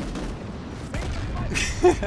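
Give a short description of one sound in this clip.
An explosion bursts with a loud crackling blast.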